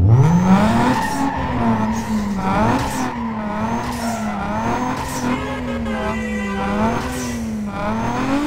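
A car engine hisses in sharp bursts between gear changes.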